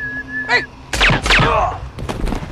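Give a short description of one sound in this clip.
A gunshot bangs sharply with a ringing echo.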